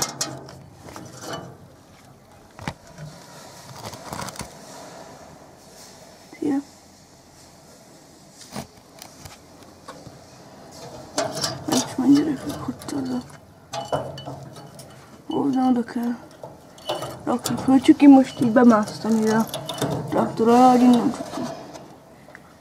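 Stiff wire scrapes and rattles against a metal wheel rim.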